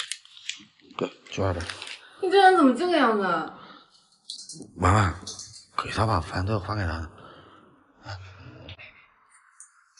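A young woman speaks with irritation close by.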